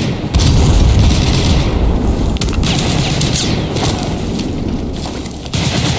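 Rain falls steadily and patters on wet ground outdoors.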